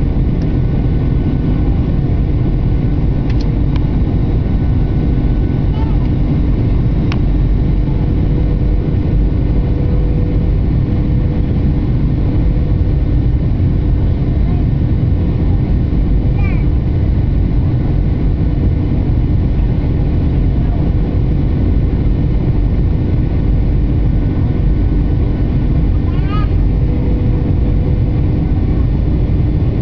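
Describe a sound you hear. A jet airliner's engines roar steadily in flight.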